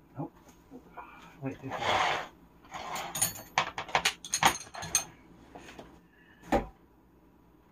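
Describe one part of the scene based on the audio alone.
Metal wrenches clink and clatter against each other.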